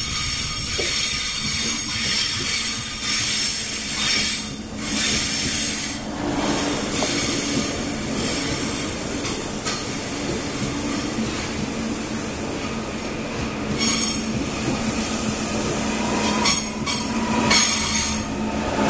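A train rumbles past close by, its wheels clattering on the rails.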